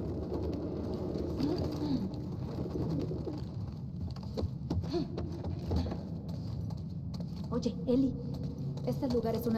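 Footsteps tread slowly across a wooden floor.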